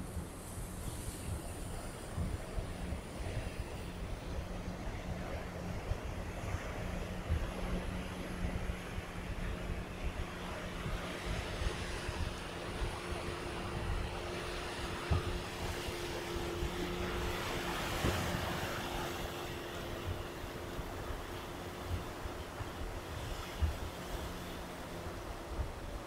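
Waves wash against rocks along the shore.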